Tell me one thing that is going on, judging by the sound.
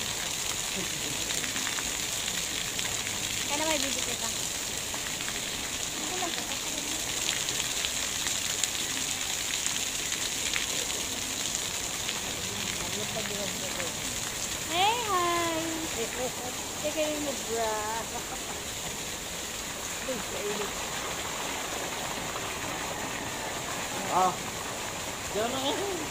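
Water splashes and pours steadily into a pool close by.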